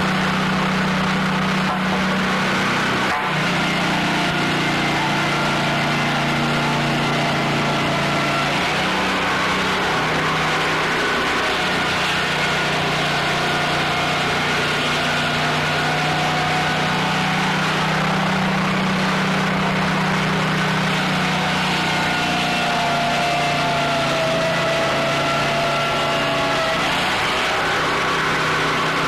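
A sawmill engine drones steadily.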